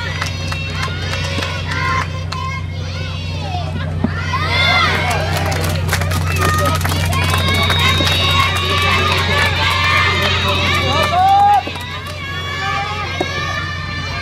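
A tennis ball is hit with a racket, with sharp pops.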